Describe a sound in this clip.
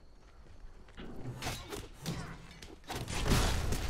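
Game combat sounds burst with sharp hits and blasts.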